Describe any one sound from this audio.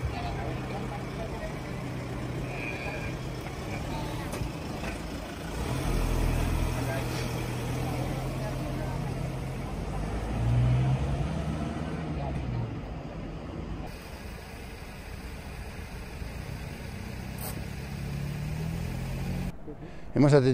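An engine idles steadily nearby.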